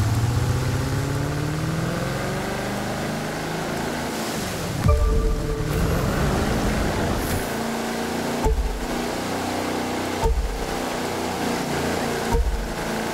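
Water splashes and sprays against a speedboat's hull.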